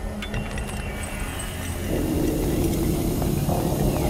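A smoke grenade hisses on the floor.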